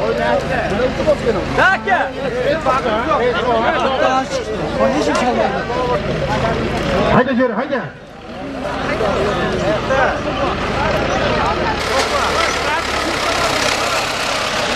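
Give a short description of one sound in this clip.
A large crowd of men shouts and calls outdoors.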